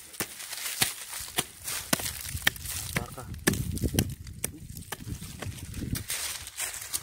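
A small pick chops and scrapes into dry soil.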